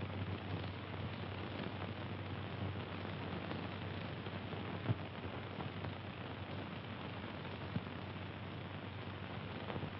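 Paper rustles softly as a letter is handled.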